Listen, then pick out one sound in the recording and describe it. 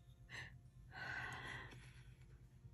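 A sheet of paper rustles softly.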